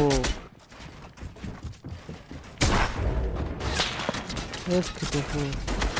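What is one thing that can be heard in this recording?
Building pieces clatter and snap into place in a video game.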